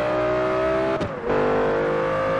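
An engine pops and crackles as the gear shifts.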